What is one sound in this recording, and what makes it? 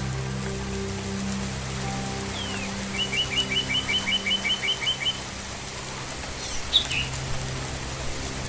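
Rain patters steadily on leaves.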